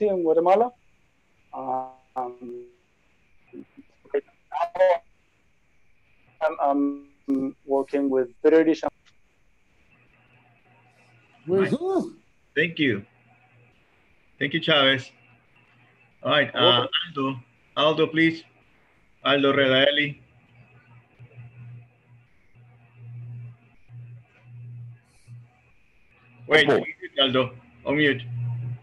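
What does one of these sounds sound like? Several men talk in turn over an online call.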